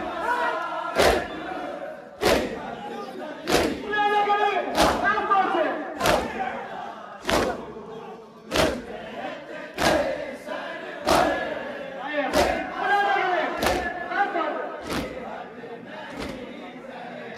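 A large crowd of men beat their chests in a slow, steady rhythm outdoors.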